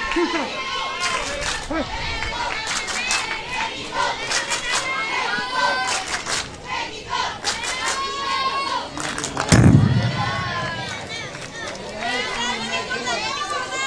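A crowd of children cheers and chants loudly outdoors.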